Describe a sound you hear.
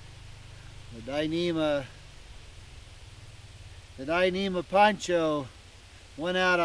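A middle-aged man talks calmly close by, outdoors.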